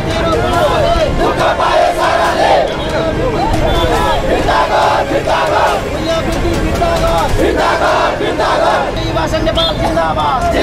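A crowd of men and women chant slogans loudly in unison outdoors.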